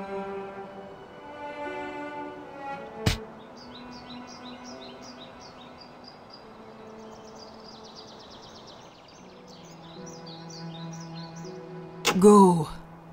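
Gentle game music plays a soft melody.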